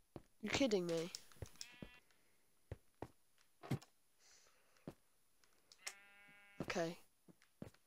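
Footsteps tap lightly on wooden steps in a game.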